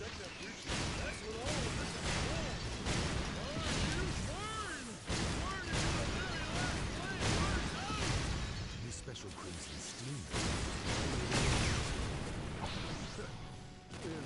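Heavy punches and kicks thud and crack against a shield.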